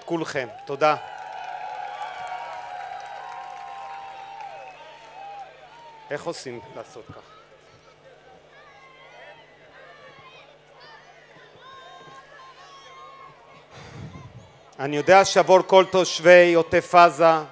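A large crowd outdoors cheers and murmurs.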